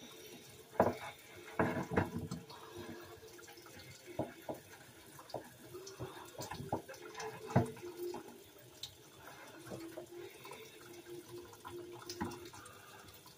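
Objects knock and clatter on a hard surface close by.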